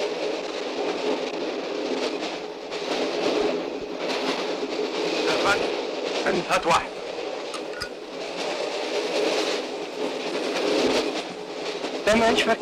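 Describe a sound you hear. A train carriage rumbles steadily.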